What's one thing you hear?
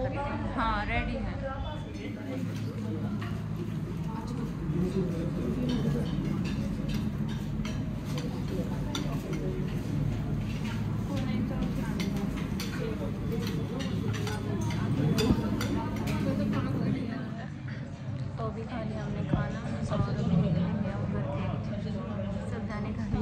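A young woman speaks close to the microphone.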